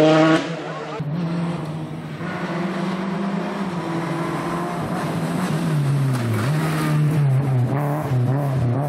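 A second rally car's engine screams as it races closer, briefly dropping revs for a gear change.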